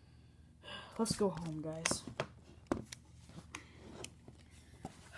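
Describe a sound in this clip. Hands knock and rub against a hard plastic toy.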